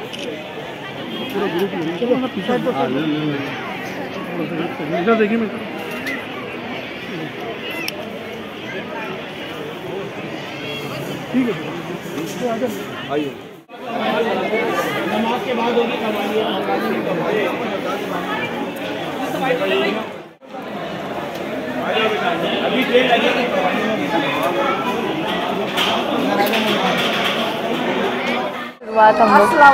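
A crowd of men and women talks and murmurs all around, outdoors.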